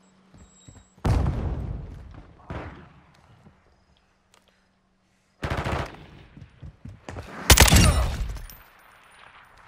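Loud rifle shots ring out with a long echoing tail.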